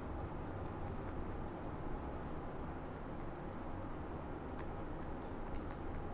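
Scissors snip through hair with quick, light clicks.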